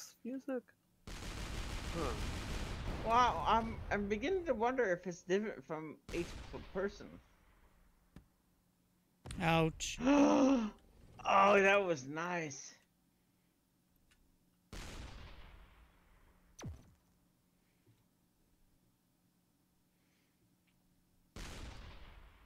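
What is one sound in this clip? A game weapon fires with a sharp blast.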